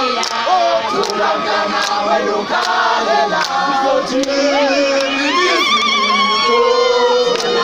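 A large crowd of men and women sings and cheers loudly outdoors.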